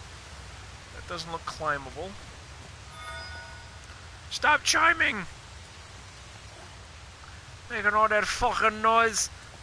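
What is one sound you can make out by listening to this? A man speaks with animation through a microphone, close by.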